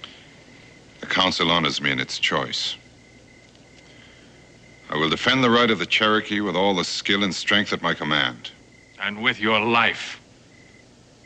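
A man speaks slowly and seriously, close by.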